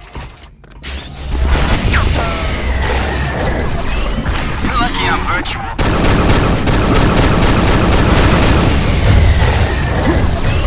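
Energy weapons fire and blast in quick bursts.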